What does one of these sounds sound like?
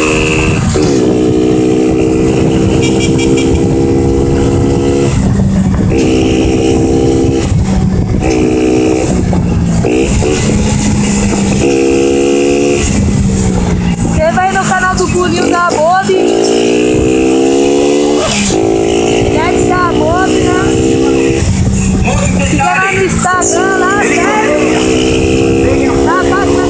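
A motorcycle engine hums and revs as it rides, changing gears now and then.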